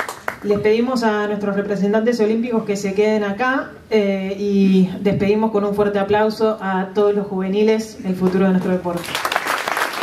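A woman speaks with animation into a microphone over a loudspeaker in an echoing hall.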